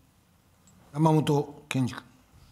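A man announces briefly over a microphone in a large hall.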